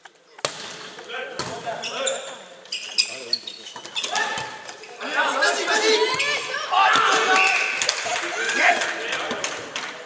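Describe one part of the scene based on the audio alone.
Sneakers squeak on the hall floor.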